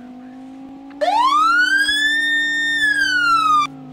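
A siren wails loudly, sweeping up and down.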